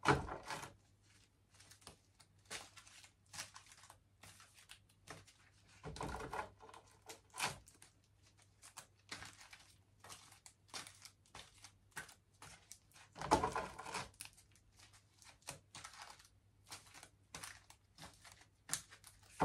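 Cards shuffle and rustle in a woman's hands.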